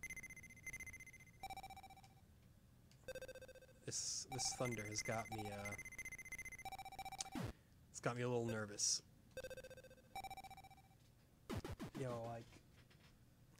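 Electronic game beeps and chimes ring out in quick bursts.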